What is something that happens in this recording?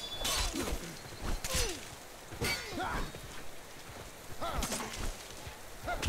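Blades clash and thud in a close fight.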